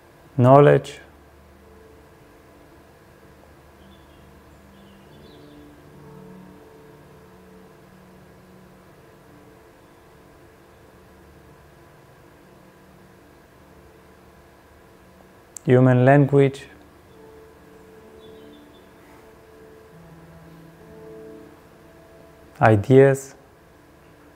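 A man speaks a few short words close to a microphone, with long pauses between.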